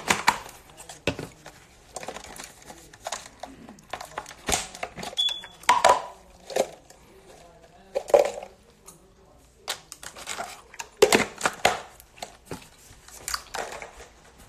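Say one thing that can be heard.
Plastic jars knock and rattle in a woman's hands.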